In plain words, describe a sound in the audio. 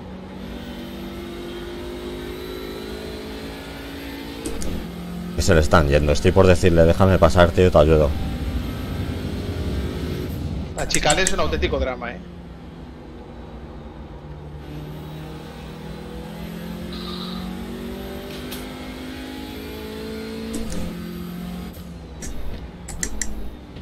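A racing car engine revs up and down as gears shift.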